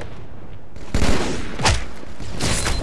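A melee blow strikes with a heavy thud.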